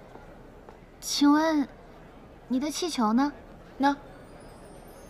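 A young woman asks a question brightly, close by.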